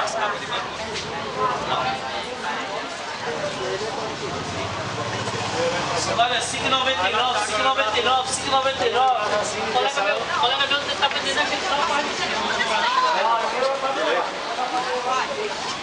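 A crowd of men and women chatters nearby on a busy street.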